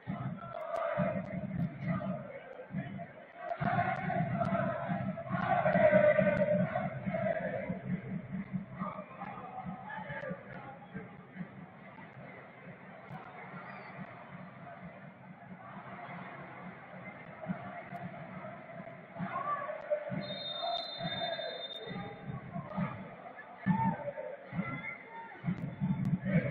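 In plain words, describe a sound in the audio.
A large stadium crowd chants and cheers in the open air.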